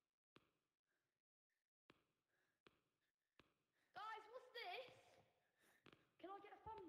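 Footsteps thud slowly on a hard concrete floor in an echoing corridor.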